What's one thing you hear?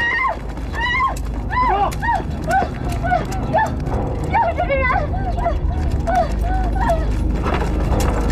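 Several men run heavily up stone steps.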